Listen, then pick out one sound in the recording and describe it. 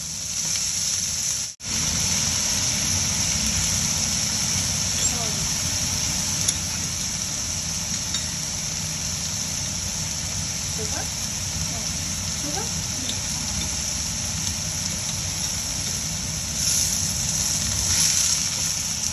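Greens sizzle steadily in a hot pan.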